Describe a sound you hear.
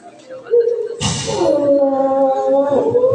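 A man cries out loudly in anguish.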